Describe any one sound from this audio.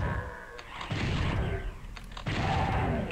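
A fireball whooshes past.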